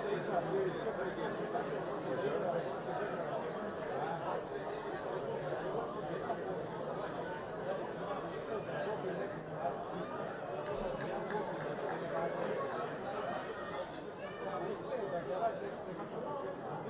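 A crowd murmurs and chatters across a large open stadium.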